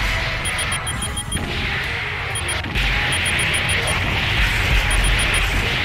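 Rapid electronic lock-on beeps repeat in a video game.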